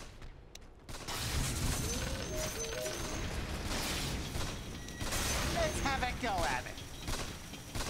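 Magic blasts and crackles ring out in a fight.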